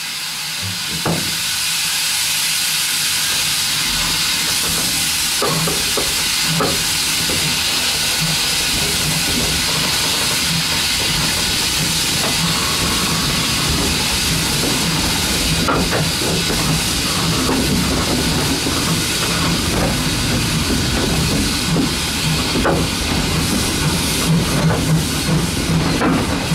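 A steam locomotive chuffs steadily, growing louder.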